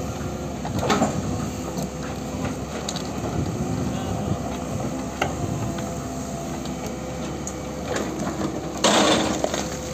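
Excavator engines rumble steadily nearby.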